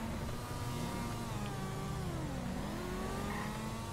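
A motorcycle engine revs past.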